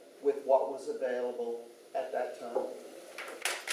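An older man speaks to a small group.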